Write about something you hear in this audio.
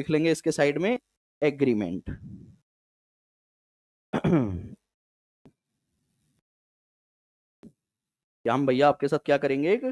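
A man lectures into a close microphone with animation, in short bursts with pauses.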